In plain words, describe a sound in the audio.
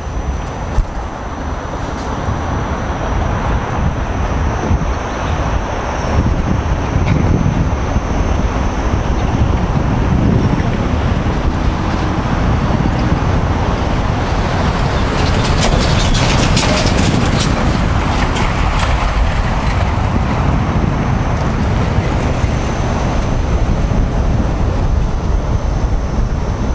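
Wind buffets a microphone loudly outdoors.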